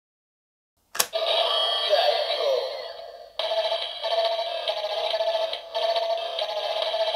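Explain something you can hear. A toy plays loud electronic music through a small, tinny speaker.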